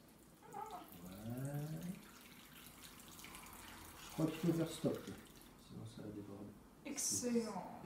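Water trickles into a plant pot.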